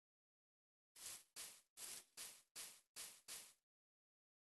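Soft footsteps thud on grass.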